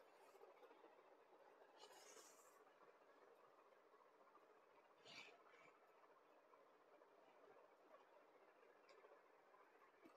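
Silk cloth rustles as it is unfolded and spread out.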